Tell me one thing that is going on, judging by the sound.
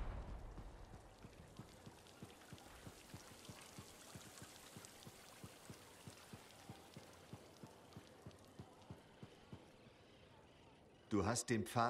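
Footsteps fall on a stone floor.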